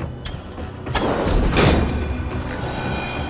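A burst of fire roars and whooshes.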